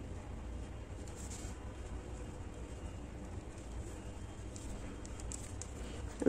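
A crochet hook softly clicks and rustles through yarn.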